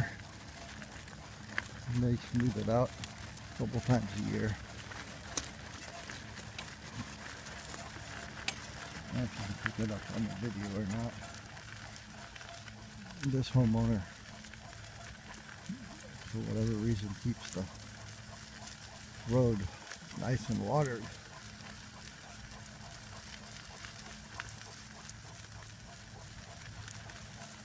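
Wheels roll steadily over a gravel road.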